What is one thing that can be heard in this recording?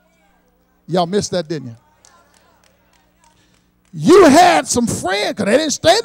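A man preaches with animation into a microphone, heard through loudspeakers in a large echoing hall.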